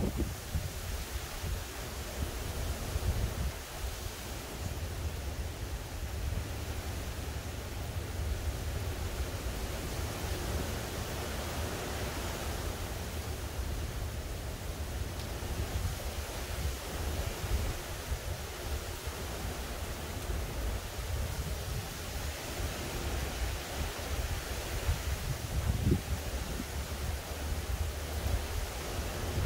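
Wind blows steadily outdoors with a low rumble.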